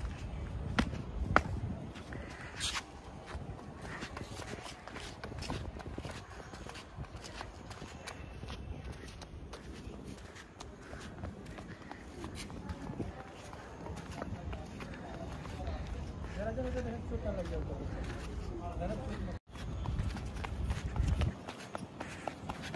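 A toddler's small footsteps patter on pavement.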